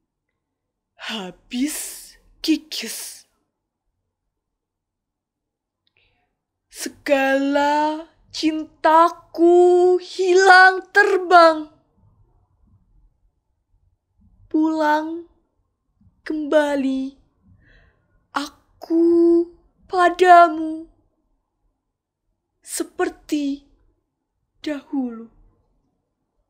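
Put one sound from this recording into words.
A young woman recites with expression close by, in bursts with long pauses.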